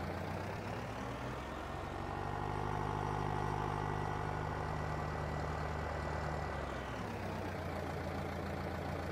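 A tractor engine rumbles steadily, rising and falling as it drives.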